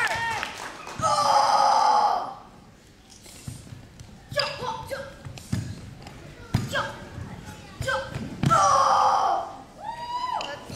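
A young boy shouts sharply in a large echoing hall.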